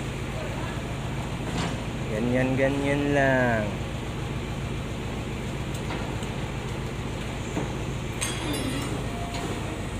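Plastic drums scrape and thud across a wet floor.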